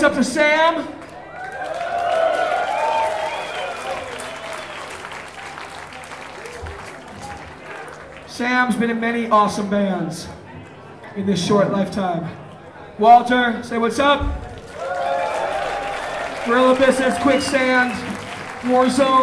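A large crowd cheers and whistles in a big hall.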